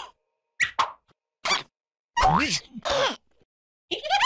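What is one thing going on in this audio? Cartoon creatures chatter in high, squeaky voices.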